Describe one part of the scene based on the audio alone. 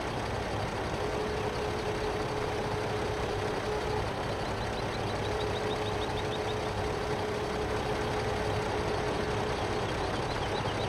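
A hydraulic crane whines as it swings a log.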